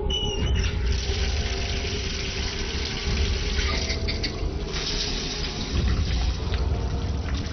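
Water runs from a tap into a bathtub.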